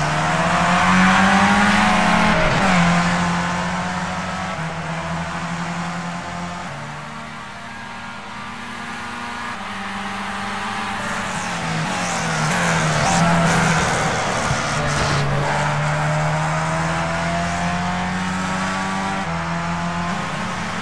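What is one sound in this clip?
A racing car engine whines at high revs, shifting gears as it speeds up and slows down.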